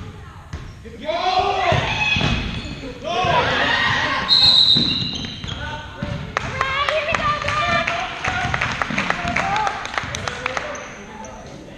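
Spectators cheer loudly.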